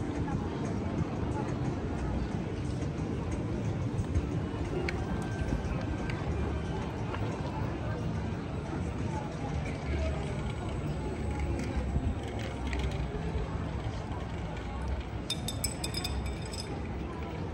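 Distant voices of passersby murmur outdoors.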